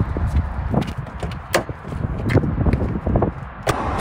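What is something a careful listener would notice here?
A car door handle clicks and the door opens.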